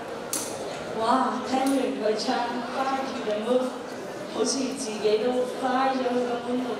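A young man speaks with animation through a microphone and loudspeakers in a large hall.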